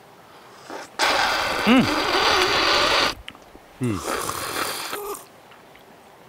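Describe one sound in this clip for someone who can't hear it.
A man crunches loudly, biting into charred food close by.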